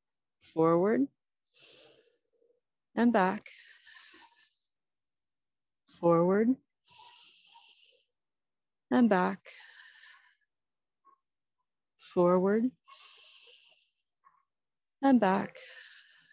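A woman gives short, sharp shouts at a steady, even pace.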